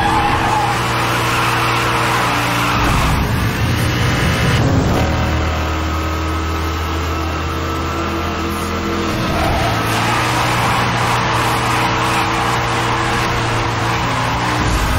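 Tyres screech as a car drifts through bends.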